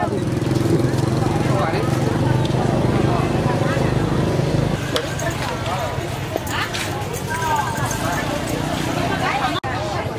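A busy outdoor crowd chatters all around.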